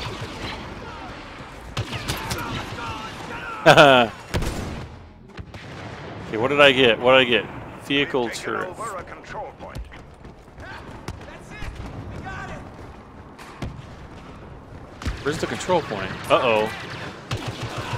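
Blaster guns fire in rapid bursts.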